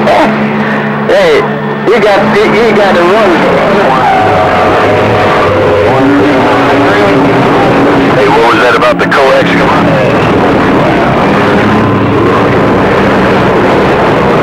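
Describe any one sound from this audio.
A radio loudspeaker plays a noisy, warbling received signal.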